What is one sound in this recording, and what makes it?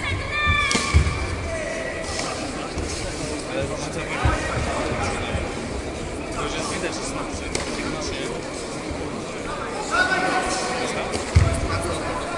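Karate fighters' punches and kicks thud against bodies.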